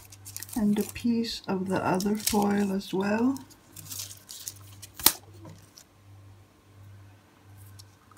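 Thin metal foil crinkles and rustles as it is handled.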